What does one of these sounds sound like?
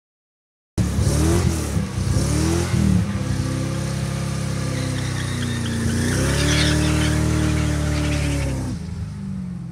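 Tyres screech on the road.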